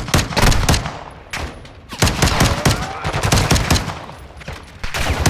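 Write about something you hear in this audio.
Gunshots bang rapidly and loudly nearby.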